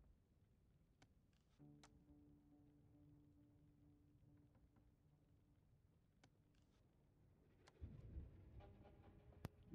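Soft clicks sound as a menu is browsed.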